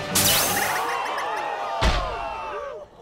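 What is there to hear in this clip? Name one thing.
A ball strikes with a sharp burst and scatters.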